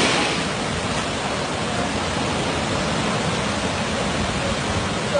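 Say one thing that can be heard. Muddy floodwater rushes and roars loudly, crashing in churning waves.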